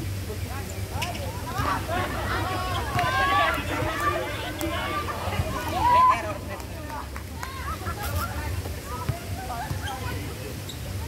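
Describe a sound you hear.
Young people shout and call out to each other outdoors.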